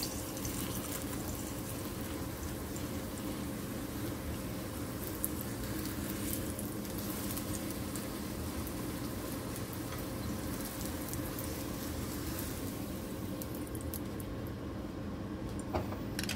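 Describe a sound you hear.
Wooden chopsticks tap against a pan.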